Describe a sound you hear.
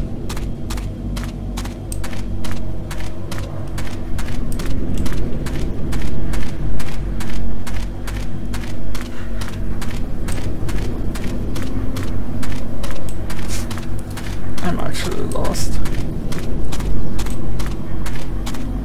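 Footsteps crunch quickly and steadily on the ground.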